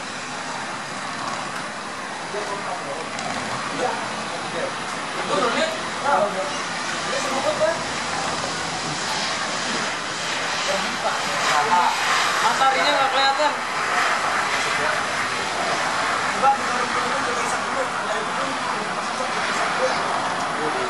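A jet airliner's engines roar steadily as it speeds along a runway.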